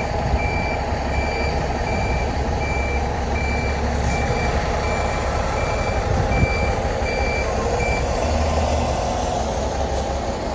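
A bus engine rumbles steadily as the bus drives slowly past.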